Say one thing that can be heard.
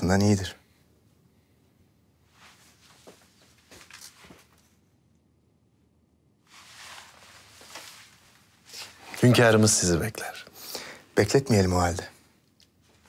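A young man speaks warmly, close by.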